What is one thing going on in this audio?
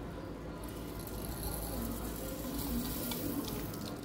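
Dry seeds pour and rattle into a metal jar.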